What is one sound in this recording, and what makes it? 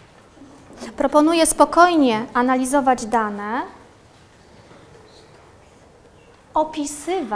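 A woman speaks clearly and with animation.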